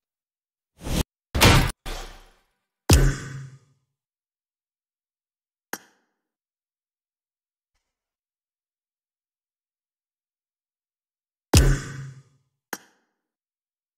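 Short game menu sound effects chime and whoosh.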